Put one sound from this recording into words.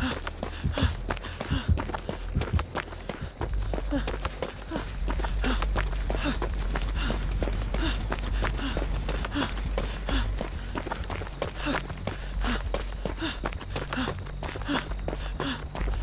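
Footsteps run on a dirt path.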